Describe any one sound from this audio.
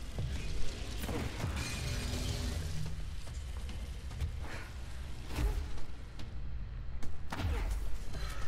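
Heavy impacts boom loudly.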